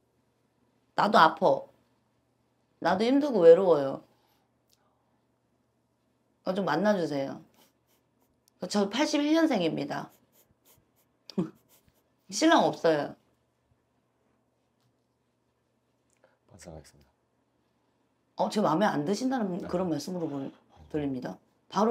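A young woman speaks calmly in bursts into a close microphone, with pauses between.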